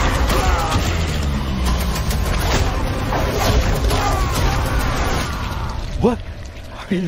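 Crashing, thudding fight sounds ring out.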